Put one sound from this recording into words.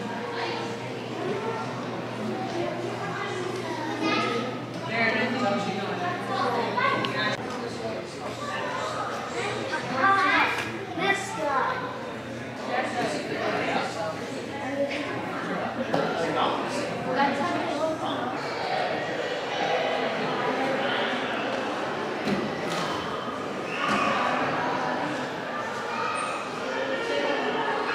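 A crowd of visitors chatters in a large echoing hall.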